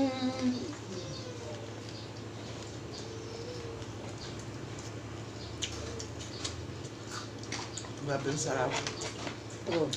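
A young man and a young woman chew and slurp food close to a microphone.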